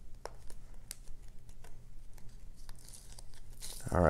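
Tape peels off a plastic card holder.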